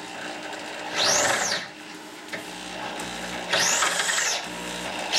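A handheld electric drill whirs up and winds down in short bursts.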